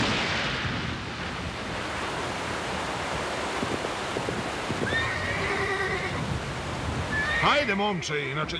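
Heavy rain pours down steadily.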